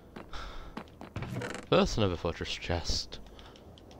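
A chest creaks open.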